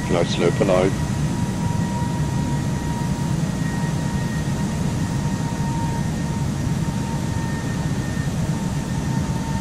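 Jet engines drone steadily in a low, even rumble.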